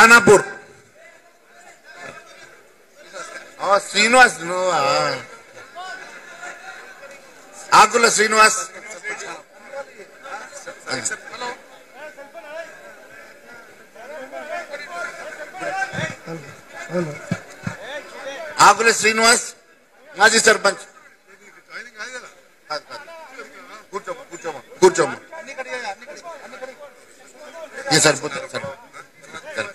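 A man speaks loudly into a microphone, his voice carried over loudspeakers with echo.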